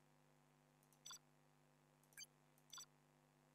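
Short sharp clicks sound.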